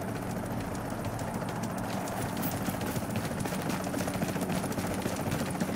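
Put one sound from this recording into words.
Footsteps thud quickly on stone steps.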